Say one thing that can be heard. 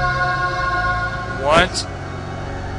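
A short video game tune plays and ends in a quick rising swoosh.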